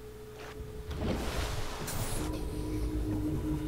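Water splashes as a submersible dives back under.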